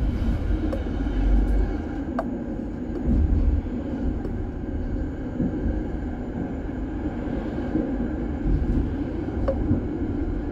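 Tram wheels click over rail joints.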